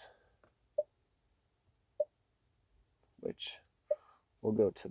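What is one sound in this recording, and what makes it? A touchscreen gives short soft beeps as it is tapped.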